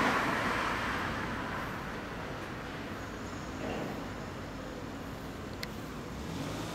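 A scooter engine idles nearby with a low, steady rumble.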